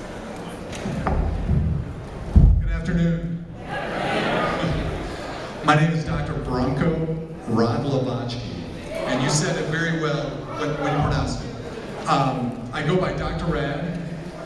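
A man speaks with animation through a microphone and loudspeakers in a large hall.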